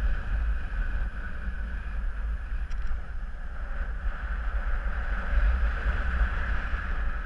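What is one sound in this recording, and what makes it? Wind rushes steadily past in flight, buffeting loudly.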